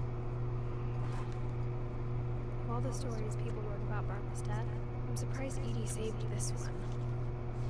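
Paper rustles as a magazine is handled.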